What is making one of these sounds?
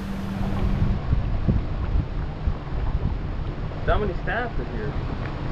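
Wind buffets the open air over the water.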